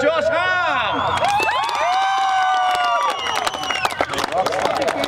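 A crowd cheers and whoops loudly outdoors.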